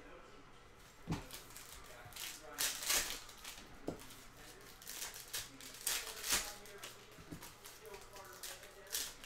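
Foil packs crinkle and tear as hands rip them open.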